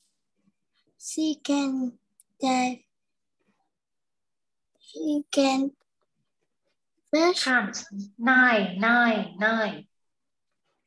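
A young woman speaks clearly and slowly through a microphone, in short phrases with pauses.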